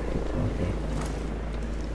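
Footsteps crunch through dry undergrowth.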